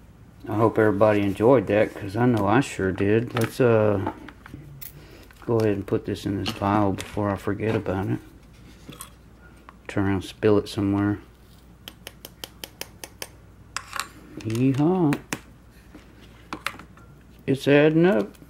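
Small plastic parts click and tap as they are handled.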